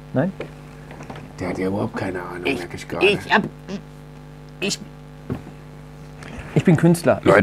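A second man laughs and talks cheerfully, close by.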